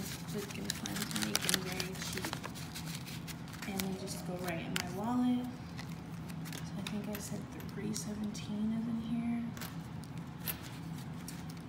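Paper money rustles and crinkles as it is handled.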